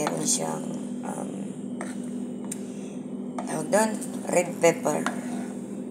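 Oil sizzles steadily in a frying pan.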